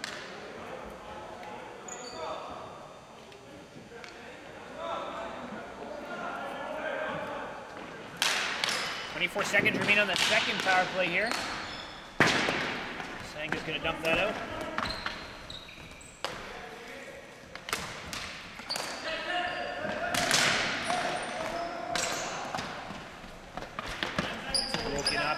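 Sneakers squeak on a hard floor.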